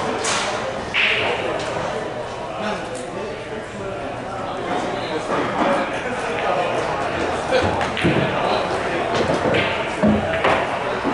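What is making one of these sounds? Billiard balls click sharply together on a table.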